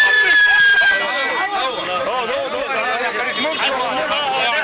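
A crowd of men talk and shout excitedly nearby.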